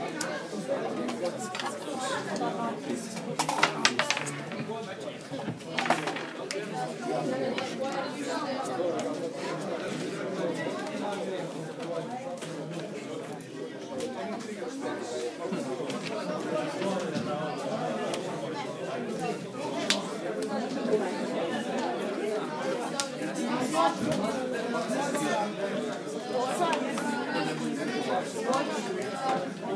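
Young men talk nearby.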